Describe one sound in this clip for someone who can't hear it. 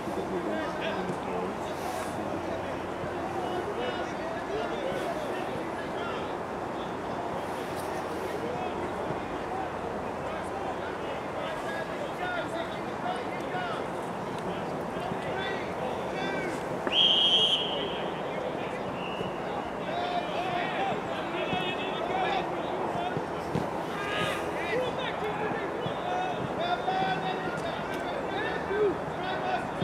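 Men call out to each other across an open field outdoors.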